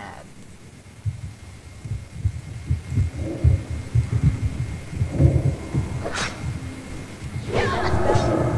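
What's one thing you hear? Footsteps thud quickly and steadily.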